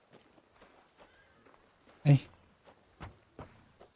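A horse's hooves clop on the ground.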